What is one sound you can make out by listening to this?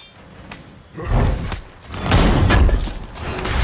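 A heavy chest lid grinds and bangs open.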